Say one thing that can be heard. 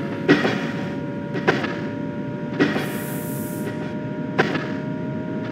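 Train wheels clack loudly over rail joints.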